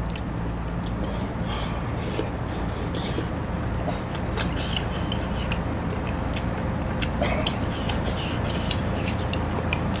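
A man chews food close to a microphone.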